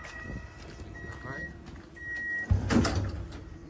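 A train door beeps with short, high tones.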